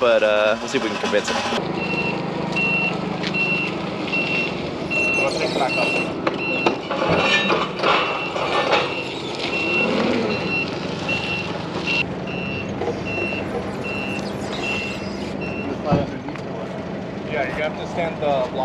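A forklift engine runs steadily.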